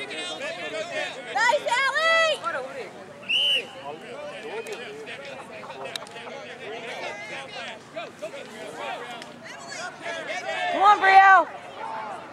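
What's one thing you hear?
Children shout and cheer loudly outdoors.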